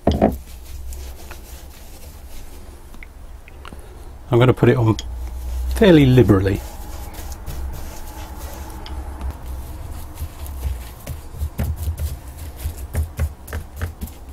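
A brush scrapes and dabs glue onto wooden boards.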